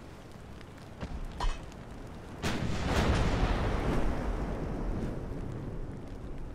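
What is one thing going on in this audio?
Heavy shell explosions boom and rumble.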